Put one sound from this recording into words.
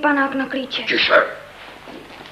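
A young woman speaks emotionally close by.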